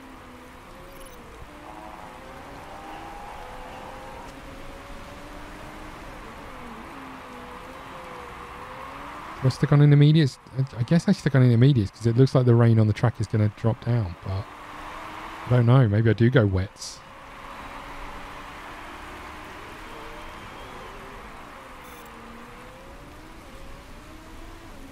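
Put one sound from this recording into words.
Racing car engines whine and drone, rising and falling in pitch.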